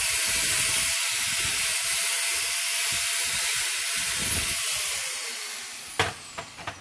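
An angle grinder grinds metal nearby with a hissing whine.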